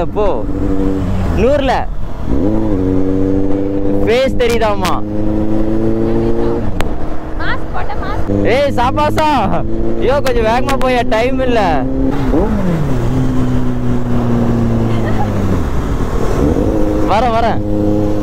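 A motorcycle engine hums steadily and revs up and down.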